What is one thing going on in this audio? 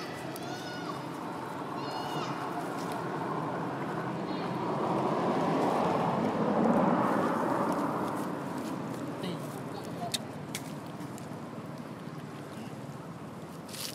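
A monkey's fur brushes and rustles very close by.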